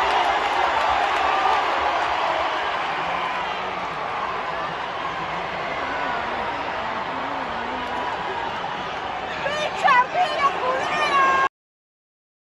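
A large indoor crowd cheers and chatters, echoing through an arena.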